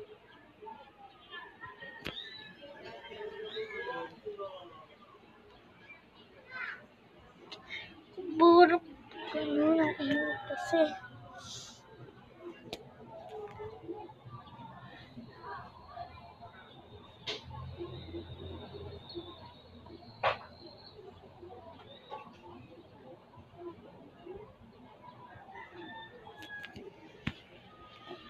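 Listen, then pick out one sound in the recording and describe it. A young girl speaks softly close by.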